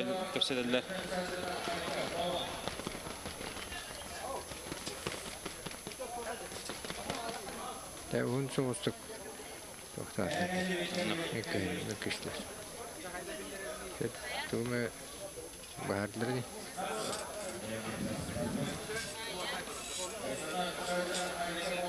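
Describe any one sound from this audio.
Several men talk together nearby.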